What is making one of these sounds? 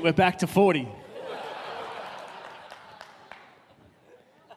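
An audience laughs briefly.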